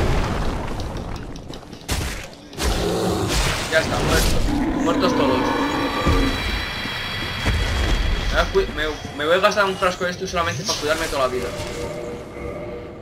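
Flames roar and whoosh.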